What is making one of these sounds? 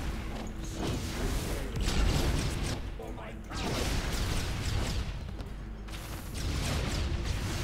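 Blows land with sharp impact sounds.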